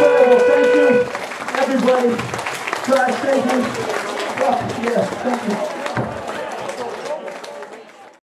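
A crowd cheers and shouts.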